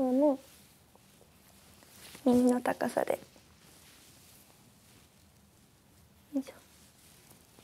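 A young woman speaks a few short words close by.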